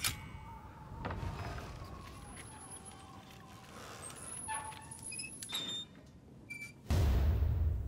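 A metal wheel creaks as it turns.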